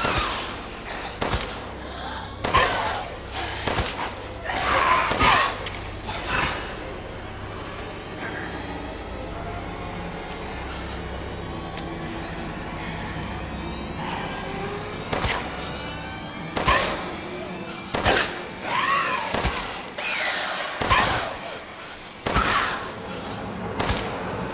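Creatures growl and shriek.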